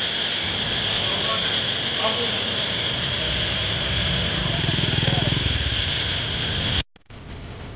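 Several men talk in low voices nearby.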